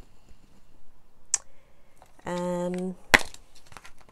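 A plastic case knocks and clicks.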